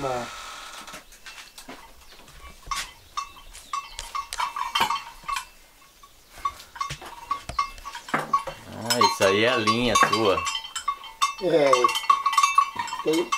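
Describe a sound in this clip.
Metal bridle bits clink and jingle.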